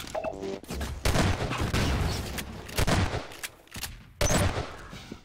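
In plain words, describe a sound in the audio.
Shotgun blasts boom loudly and echo.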